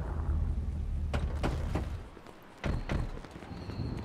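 A vehicle door thuds shut.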